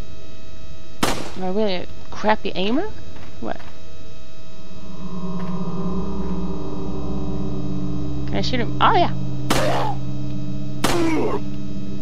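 A pistol fires sharp, echoing shots.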